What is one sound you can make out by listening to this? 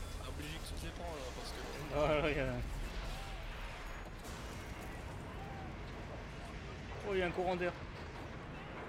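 A man shouts urgently.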